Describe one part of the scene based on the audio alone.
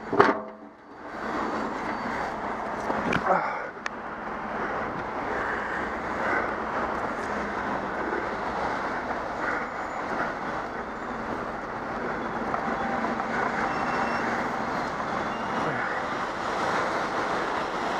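Wind rushes steadily past a microphone outdoors.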